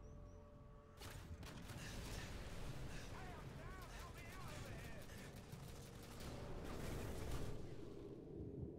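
A large explosion booms nearby.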